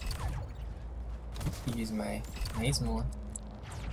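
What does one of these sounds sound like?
A portal whooshes as someone passes through it.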